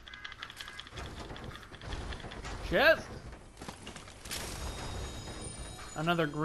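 A treasure chest hums and chimes in a video game.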